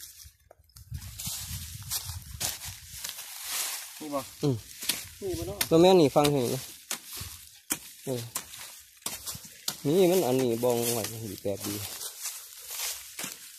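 Dry leaves rustle and crackle underfoot.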